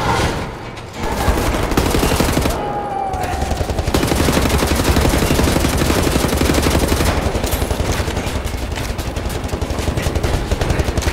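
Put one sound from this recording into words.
An automatic rifle fires rapid bursts of gunshots.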